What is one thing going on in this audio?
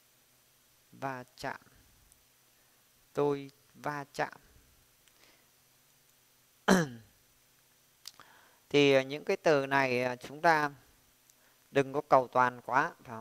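A young man speaks slowly and clearly into a nearby microphone, pausing between words.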